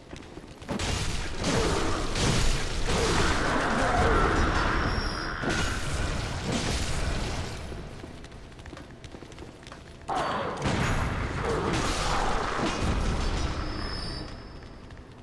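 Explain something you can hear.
A game's weapons slash in loud bursts of combat noise.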